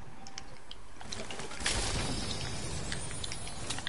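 A treasure chest opens with a shimmering chime.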